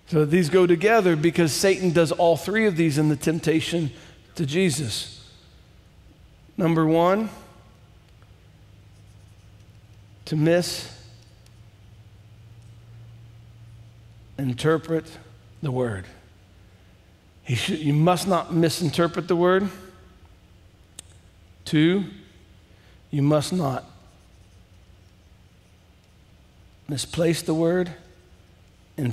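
A man speaks calmly through a headset microphone, in short phrases with pauses.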